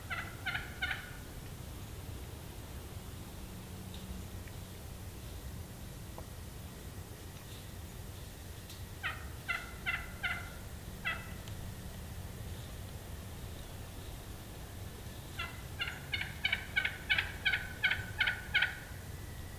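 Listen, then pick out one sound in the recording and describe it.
A wild turkey yelps in short bursts of repeated calls.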